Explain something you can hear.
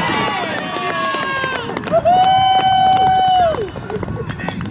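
Young women cheer and shout loudly outdoors.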